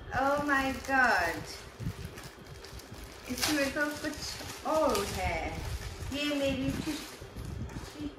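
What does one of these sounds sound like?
A plastic bag crinkles as it is unwrapped.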